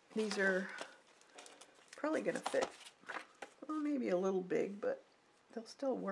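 Stiff card pages slide and tap against each other.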